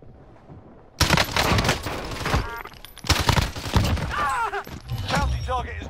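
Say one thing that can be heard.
Gunfire rattles in rapid bursts nearby.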